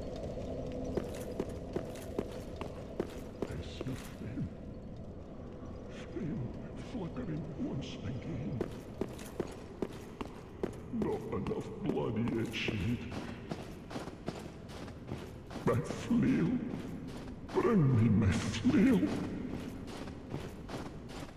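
Heavy armoured footsteps clank steadily on a stone floor.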